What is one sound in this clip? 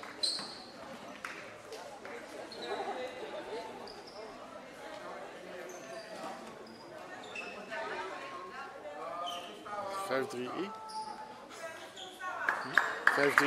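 Sports shoes squeak sharply on a hall floor.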